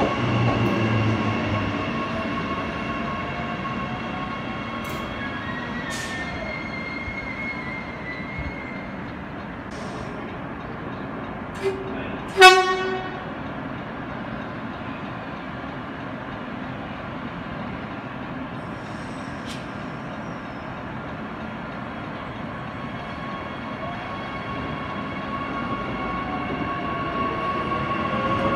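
An electric suburban train pulls into a platform and slows, its motors whining.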